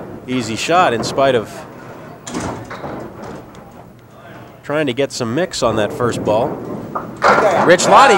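Bowling pins clatter as they fall.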